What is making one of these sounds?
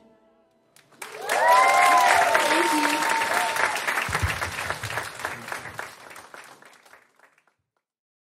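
An audience applauds loudly, then the clapping fades away.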